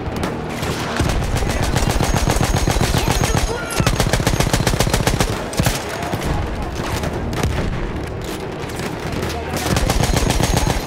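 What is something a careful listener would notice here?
A heavy machine gun fires in rapid bursts.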